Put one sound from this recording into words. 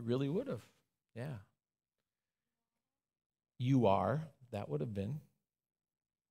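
A man speaks calmly and warmly through a microphone, with pauses between phrases.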